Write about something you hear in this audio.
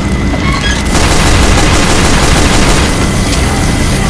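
A pistol fires a quick burst of shots.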